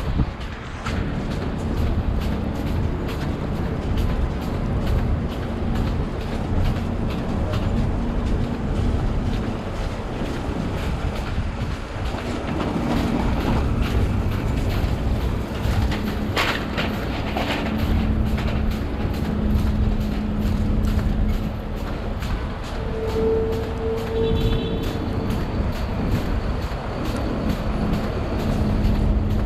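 Footsteps crunch on slushy snow at a steady pace.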